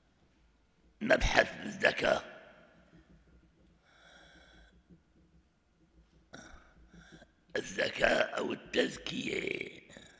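An elderly man speaks slowly and calmly into a microphone, in a reverberant room.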